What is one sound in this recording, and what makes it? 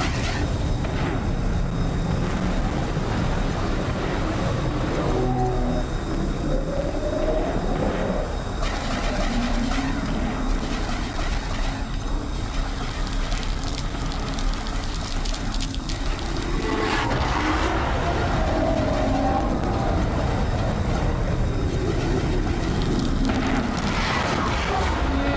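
A spacecraft engine rumbles steadily.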